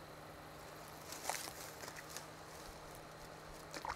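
Clothing rustles as a man moves about.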